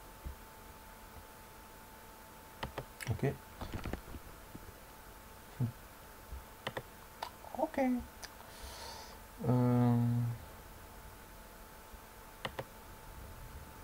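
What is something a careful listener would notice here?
A chess piece clicks onto a board.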